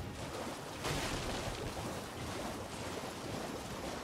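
A horse gallops through shallow water, splashing.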